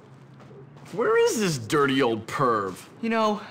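A young man speaks loudly and with animation, close by.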